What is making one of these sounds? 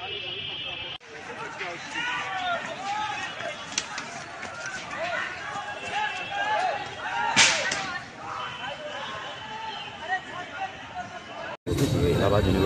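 A crowd shouts and yells outdoors.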